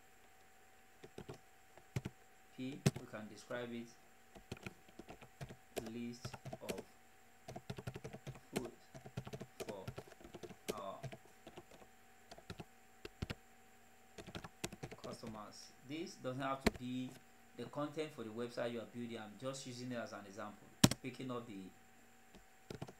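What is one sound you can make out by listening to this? Keys click on a computer keyboard as someone types.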